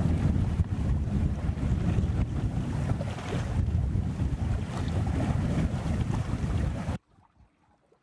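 Strong wind buffets and roars outdoors.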